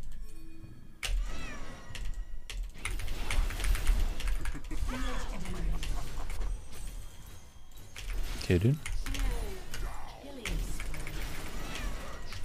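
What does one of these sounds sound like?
Magic spells blast and crackle in a hectic fight.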